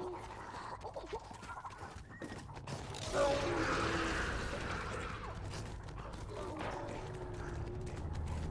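Quick footsteps rustle through tall grass.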